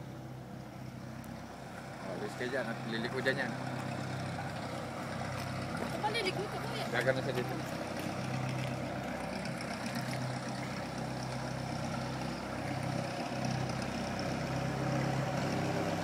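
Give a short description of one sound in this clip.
A small propeller plane's engine drones steadily outdoors.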